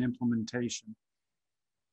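A middle-aged man speaks briefly through an online call microphone.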